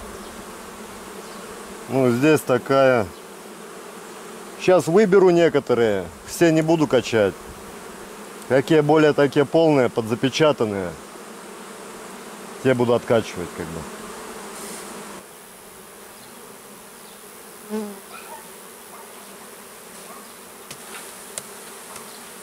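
Bees buzz around an open hive.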